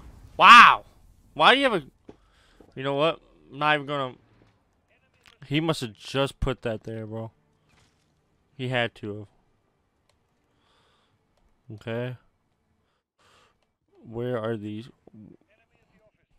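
A man talks with animation close to a microphone, in short bursts.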